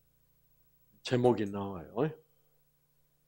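An elderly man speaks briefly and calmly into a microphone.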